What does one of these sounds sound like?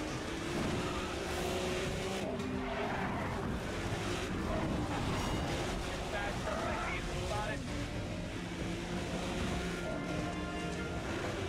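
A race car engine roars loudly at high revs.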